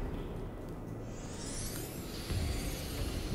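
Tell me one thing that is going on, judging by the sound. A small mechanical gadget whirs and hums.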